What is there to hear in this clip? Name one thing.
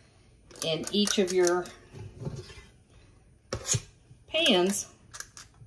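A metal scoop scrapes and plops thick batter into a pan.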